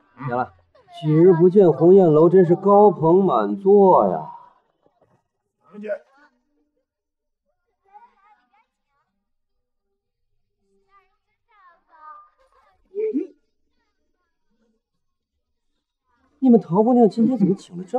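A woman speaks brightly and with animation.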